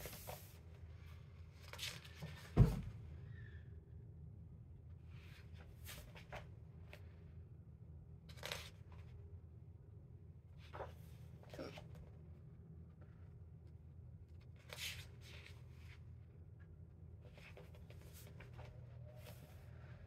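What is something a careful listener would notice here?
Paper pages of a paperback book rustle and flip as they are turned by hand.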